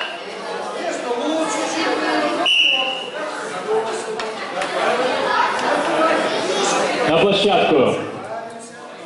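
A man speaks loudly over a microphone, echoing through a large hall.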